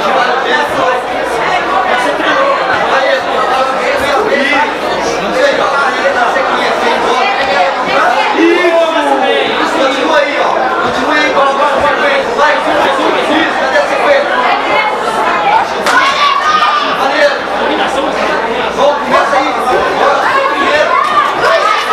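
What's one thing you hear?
A crowd of spectators shouts and cheers throughout.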